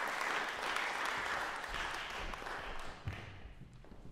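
Footsteps thud on a wooden floor in an echoing hall.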